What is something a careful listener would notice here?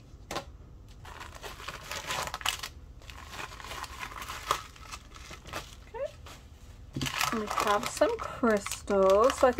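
A small plastic bag crinkles and rustles close by.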